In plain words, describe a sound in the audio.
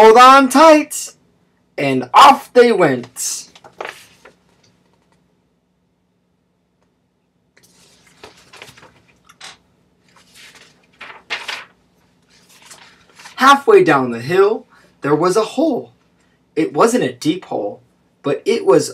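A man reads aloud with animation, close to a microphone.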